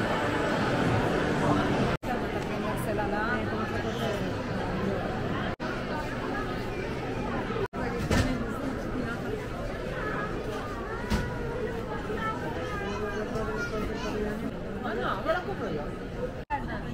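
A crowd of people chatters in a large, echoing hall.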